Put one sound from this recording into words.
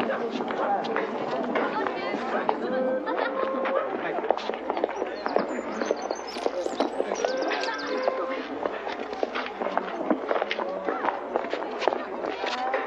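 A crowd of people chatters throughout outdoors.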